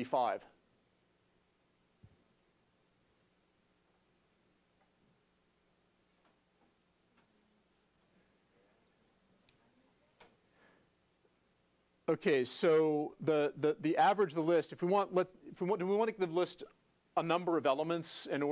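A man speaks calmly into a clip-on microphone, explaining with pauses.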